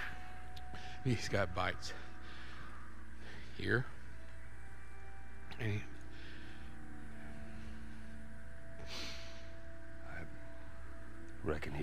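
A man speaks in a low, weary voice.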